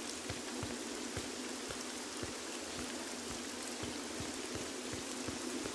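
Rain falls in a steady hiss.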